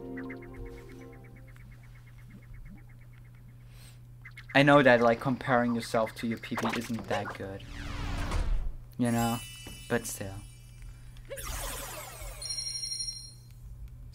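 Game music and sound effects chime and jingle.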